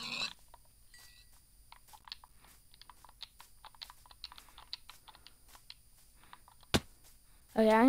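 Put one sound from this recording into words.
Footsteps crunch softly on grass.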